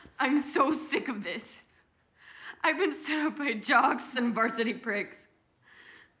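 A young woman speaks close by in a tense, mocking tone.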